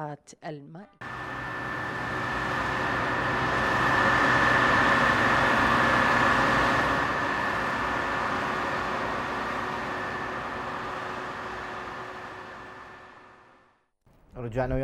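A combine harvester engine rumbles steadily as it cuts through a field.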